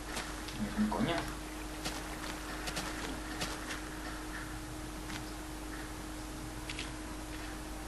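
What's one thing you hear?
Water pours out of a bucket and splashes.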